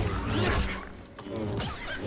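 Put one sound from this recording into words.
A lightsaber swings and hums.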